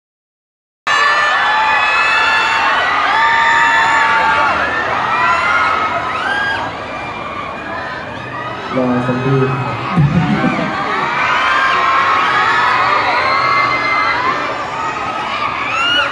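A crowd of young women screams and cheers loudly nearby.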